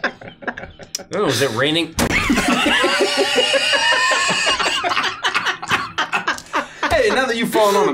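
Several young men and women laugh loudly together through microphones.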